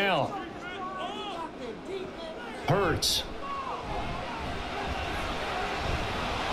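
A stadium crowd cheers steadily.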